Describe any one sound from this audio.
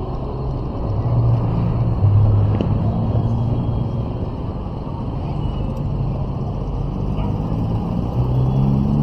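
A motorcycle engine hums steadily and changes pitch as it speeds up and slows down.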